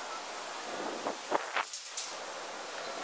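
A metal gate latch clicks and rattles.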